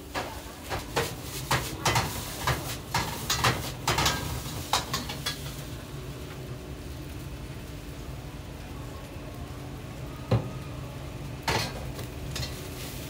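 Burning pine needles crackle and pop.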